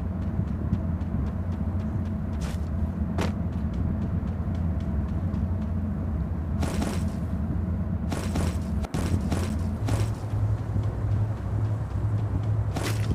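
Footsteps thud on grass as a game character runs.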